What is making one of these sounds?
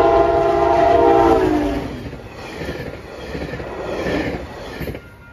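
A passenger train rumbles and clatters past on the tracks.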